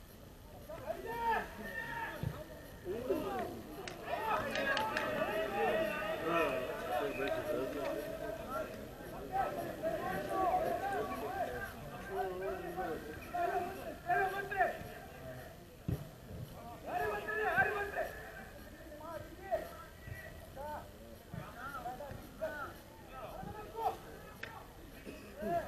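Several young men chat casually nearby, outdoors in an open space.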